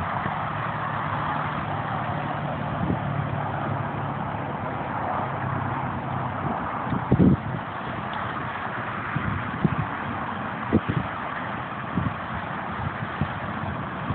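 Wind blows steadily through tall grass outdoors.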